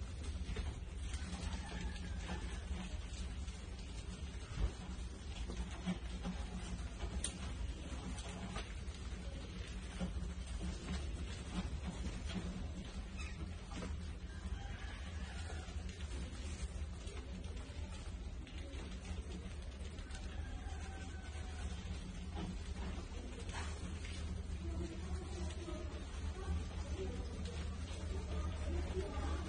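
Mice scratch and scurry with tiny claws on a hard floor.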